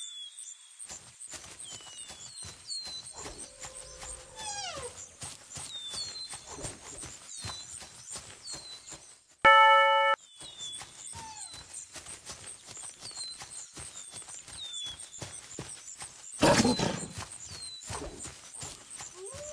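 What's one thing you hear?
An animal's paws patter quickly over dry ground.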